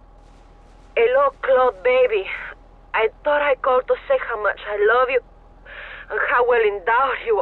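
A woman speaks warmly through a phone.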